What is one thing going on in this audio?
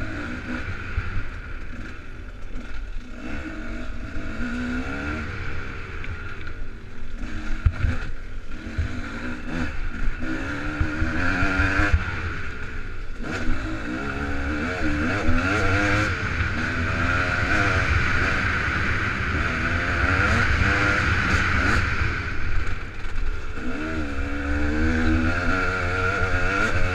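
Bicycle tyres roll and crunch over a dirt trail.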